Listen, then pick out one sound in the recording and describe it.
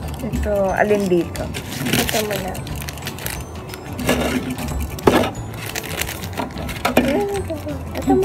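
Plastic wrappers crinkle and rustle as hands handle them.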